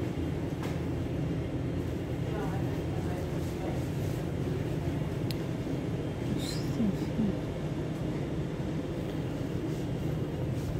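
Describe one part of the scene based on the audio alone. A low steady hum of ventilation fills the room.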